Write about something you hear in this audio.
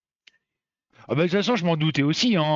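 A middle-aged man speaks with animation into a headset microphone, close by.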